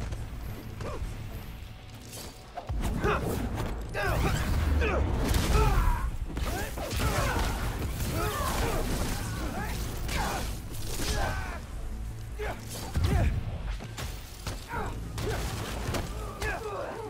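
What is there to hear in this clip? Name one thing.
Punches and kicks land with heavy thuds in a video game fight.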